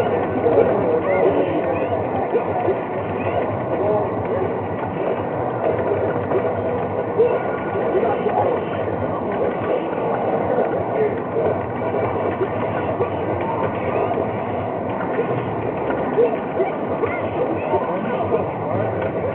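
Fighting game music and sound effects play loudly through speakers.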